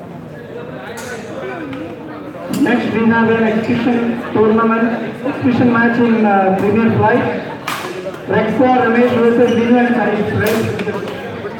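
Rackets smack a shuttlecock back and forth.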